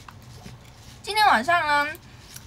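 A young woman speaks up close in a high, animated voice.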